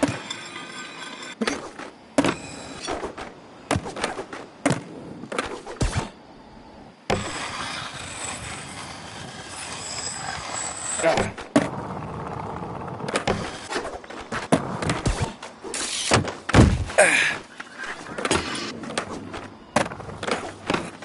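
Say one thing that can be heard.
Skateboard wheels roll over concrete.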